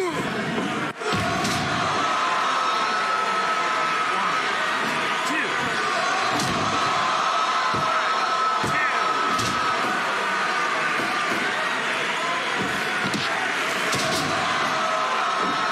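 Heavy bodies thud onto a wrestling mat.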